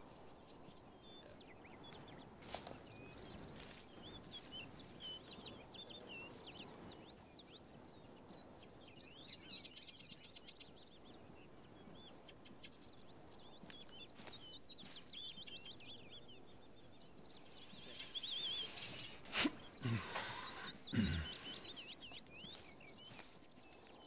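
Birds chirp and whistle among trees.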